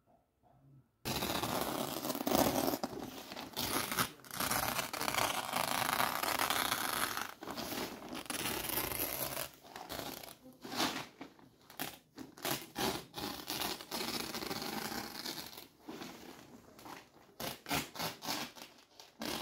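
A plastic tarp rustles and crinkles as it is handled.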